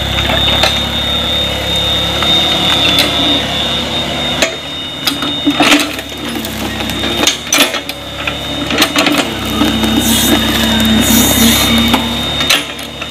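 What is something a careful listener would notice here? A small excavator's diesel engine runs and hums steadily close by.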